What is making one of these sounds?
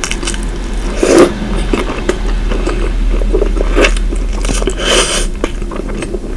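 A woman bites into a flaky croissant with loud, close crunching.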